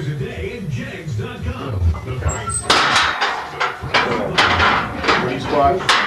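A man grunts with effort while lifting.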